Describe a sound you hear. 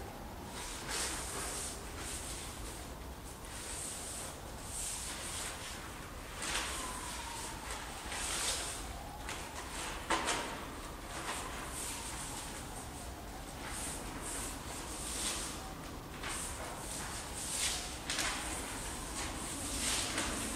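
Water pours and splashes onto a hard floor in a large echoing hall.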